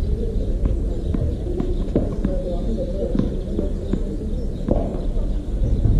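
A tennis ball bounces a few times on a hard court.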